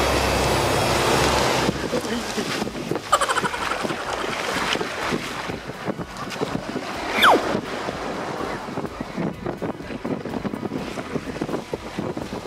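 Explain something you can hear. Water splashes as a man runs through shallow surf.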